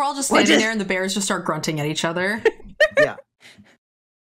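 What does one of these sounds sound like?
A young woman laughs through a microphone.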